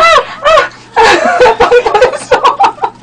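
A young woman talks and laughs with animation close to a microphone.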